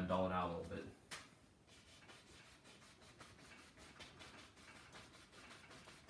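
A paintbrush brushes softly across canvas.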